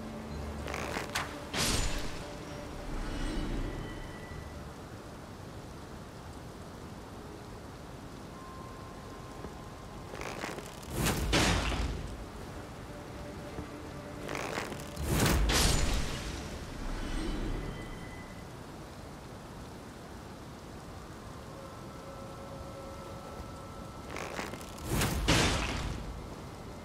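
A magic spell bursts out with a loud rushing whoosh, again and again.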